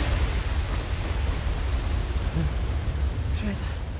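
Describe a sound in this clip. A waterfall rushes and splashes.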